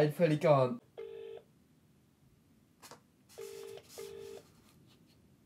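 A phone's ringing tone beeps through its speaker.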